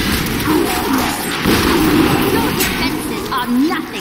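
A roaring burst of fire whooshes.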